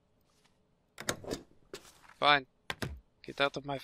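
A heavy metal tray slides open with a clunk.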